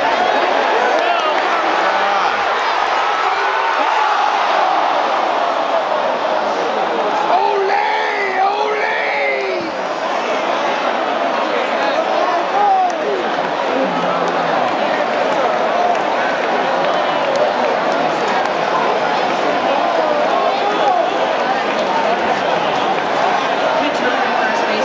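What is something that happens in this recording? Nearby spectators shout and whoop with excitement.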